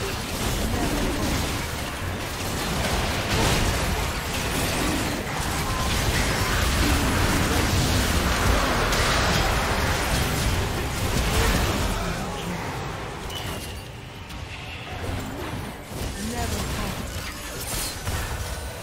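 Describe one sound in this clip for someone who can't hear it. Spell blasts and impacts crash and whoosh in a busy fight.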